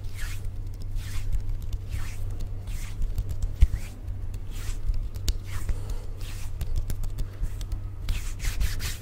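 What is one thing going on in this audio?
Hands swish and rub close to a microphone.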